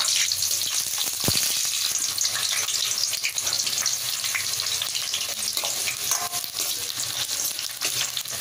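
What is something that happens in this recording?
Onions sizzle and crackle in oil in a steel pan.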